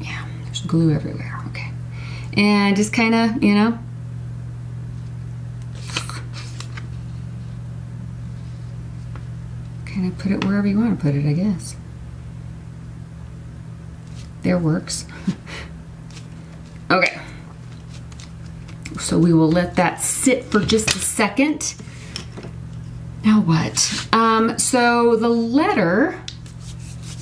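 A woman talks calmly into a close microphone.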